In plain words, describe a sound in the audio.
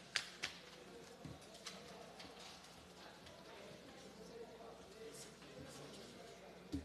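Papers rustle and objects knock on a desk.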